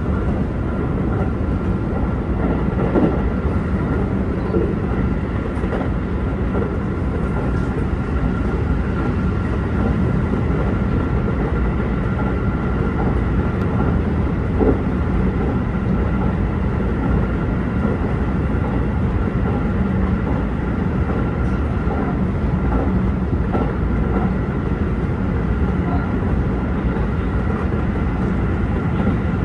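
A steady electric motor whine hums inside the cab.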